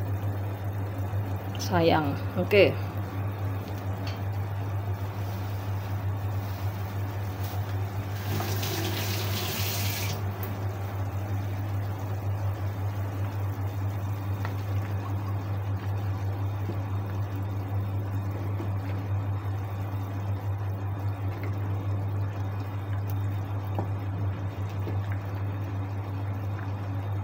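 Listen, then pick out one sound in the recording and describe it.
Soup bubbles gently in a pot.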